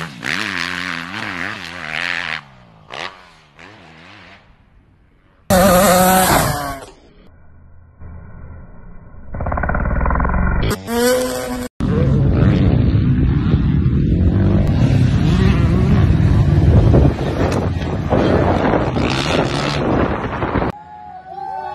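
A dirt bike engine revs and roars.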